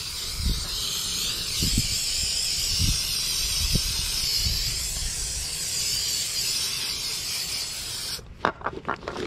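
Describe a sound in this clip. A spray can hisses steadily in close bursts.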